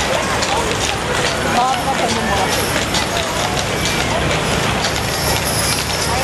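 Horse hooves clop on wet pavement.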